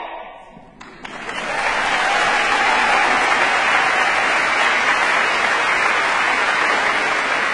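An audience applauds loudly and steadily.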